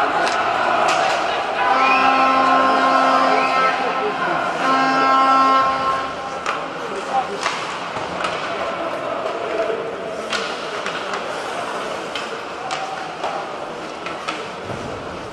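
Skates scrape and hiss across the ice.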